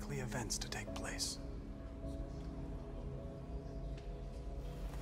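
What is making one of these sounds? A young man speaks quietly and calmly.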